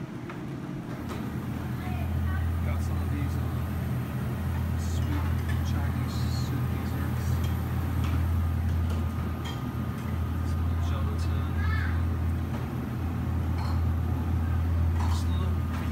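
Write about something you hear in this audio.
A refrigerator hums low and steady.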